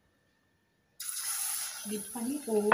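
Food sizzles loudly as it drops into hot oil.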